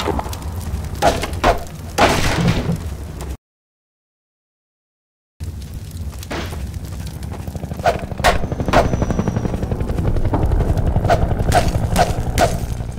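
A metal bar strikes and smashes wooden boards with sharp cracks.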